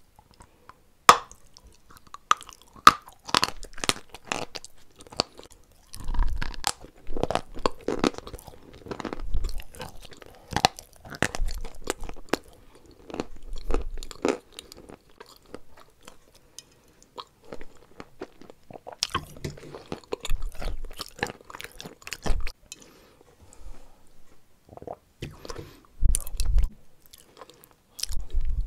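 A woman eats soft food close up, with wet, squishy chewing sounds.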